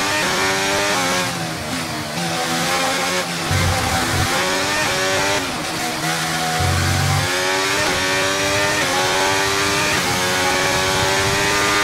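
A racing car engine screams at high revs, rising and dropping in pitch as gears change.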